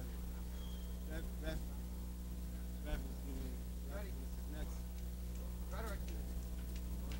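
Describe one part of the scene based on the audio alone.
A man talks casually in short bursts.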